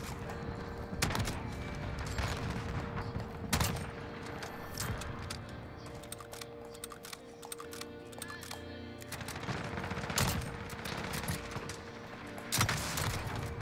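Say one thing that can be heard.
A sniper rifle fires with sharp loud cracks.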